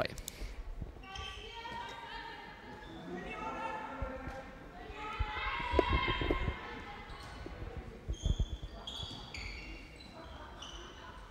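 Spectators chatter quietly in the stands.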